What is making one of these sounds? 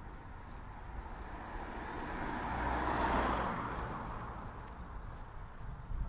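A car drives past on the road, growing louder and then fading.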